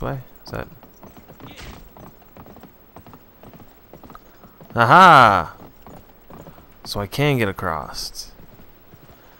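Horse hooves clop steadily on wooden boards.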